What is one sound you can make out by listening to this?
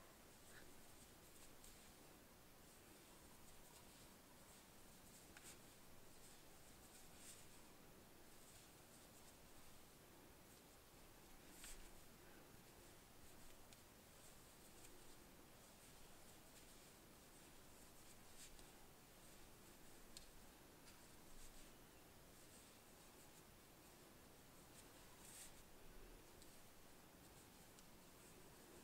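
Wooden knitting needles click and tap softly against each other.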